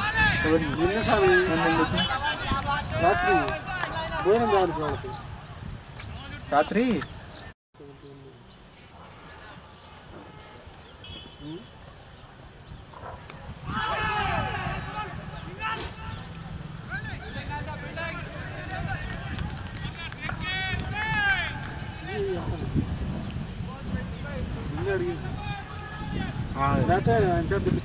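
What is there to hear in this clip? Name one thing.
Several men talk and call out outdoors.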